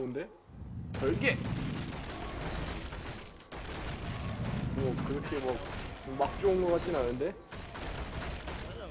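Spells and weapons crackle and clash in a fast game battle.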